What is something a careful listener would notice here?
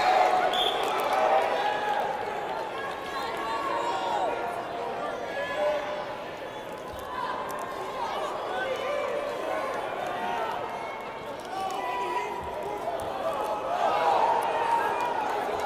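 A large crowd shouts and cheers in a big echoing gym.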